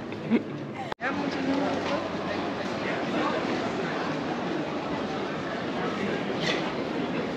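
A crowd of people murmurs in a busy street outdoors.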